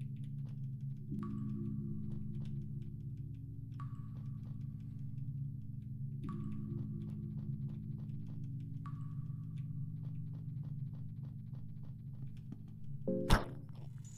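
Footsteps tap steadily on a stone floor.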